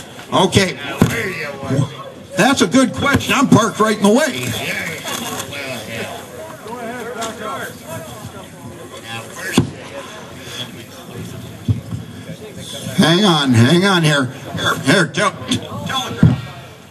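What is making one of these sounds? Adult men speak loudly and with animation outdoors among a crowd.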